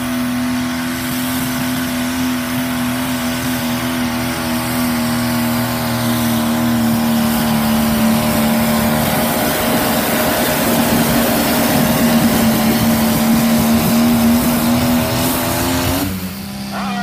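A tractor engine roars loudly and steadily as it pulls a heavy load.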